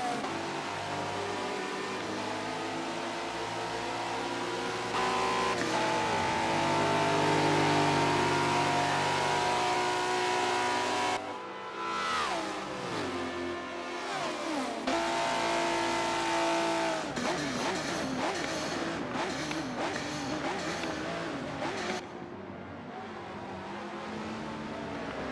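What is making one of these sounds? A sports car engine roars at high speed, its pitch rising and falling as it shifts gears.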